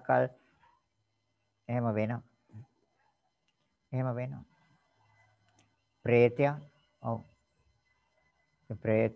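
An elderly man speaks slowly and calmly in short phrases through an online call.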